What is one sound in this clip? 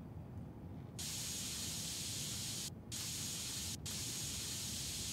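Spray paint hisses in steady bursts.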